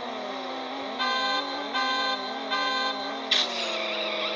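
Beeps count down before a race start.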